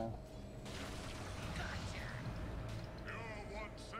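Magic spells burst with sharp whooshing blasts.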